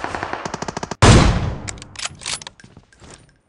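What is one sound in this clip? A sniper rifle fires a loud shot with a ringing echo.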